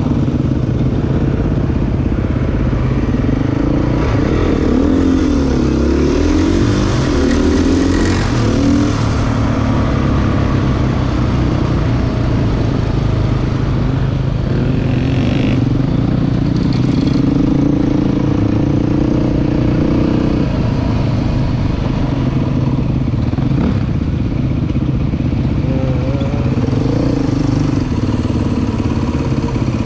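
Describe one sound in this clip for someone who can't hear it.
A motorcycle engine revs and hums close by.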